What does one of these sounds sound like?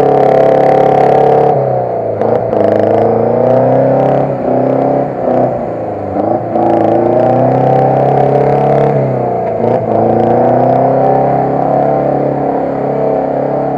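An engine roars loudly and revs up and down.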